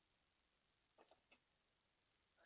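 Small objects knock lightly on a tabletop.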